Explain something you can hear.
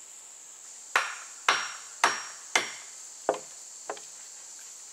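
A hammer knocks sharply on wooden poles outdoors, several blows in a row.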